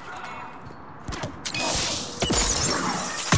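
An assault rifle fires a rapid burst.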